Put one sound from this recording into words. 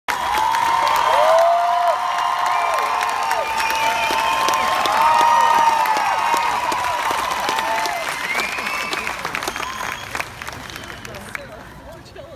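Cellos play a lively tune through loudspeakers at an outdoor concert.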